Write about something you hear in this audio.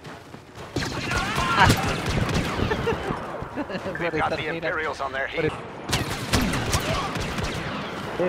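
Blaster guns fire in rapid sharp bursts.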